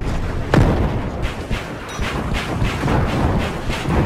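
A rocket explodes in the distance.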